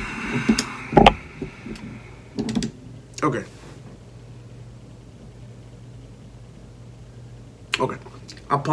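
A young man speaks and laughs close to a microphone, in short bursts.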